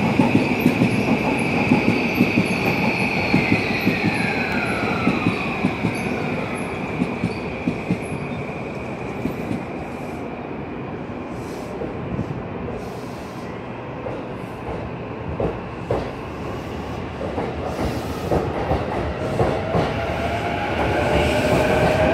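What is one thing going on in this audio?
A train rolls slowly along a platform with a low rumble.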